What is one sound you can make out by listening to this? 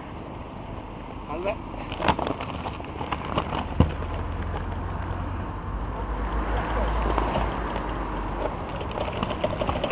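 Mountain bikes roll over a grassy track.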